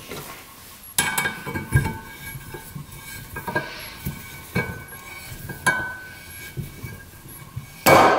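A valve spring compressor clicks and clanks on an aluminium cylinder head.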